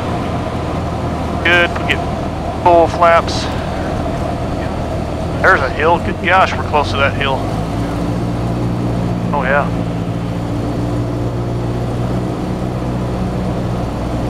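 A small plane's propeller engine drones steadily from inside the cabin.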